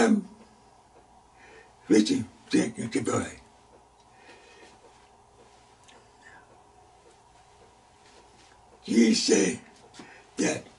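An elderly man speaks with animation into a close microphone, pausing between phrases.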